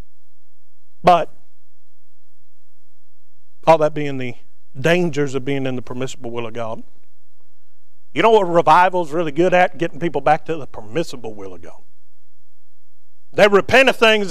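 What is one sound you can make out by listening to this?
A man speaks with animation through a microphone, in a room that echoes slightly, pausing between phrases.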